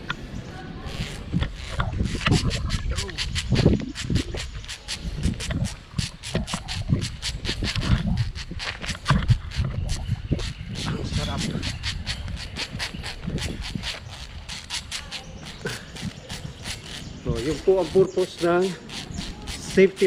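A metal pulley clicks and rattles along a cable.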